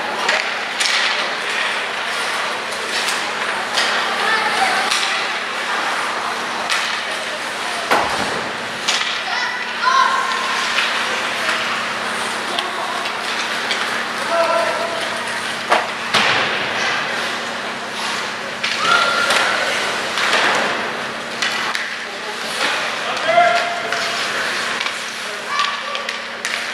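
Skate blades scrape and carve across ice in an echoing arena.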